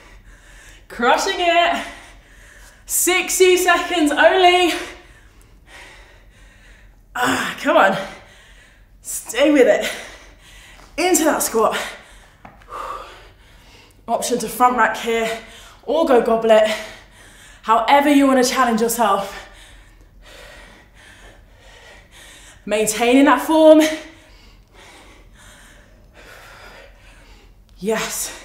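A young woman speaks calmly and clearly into a close microphone, pausing between phrases.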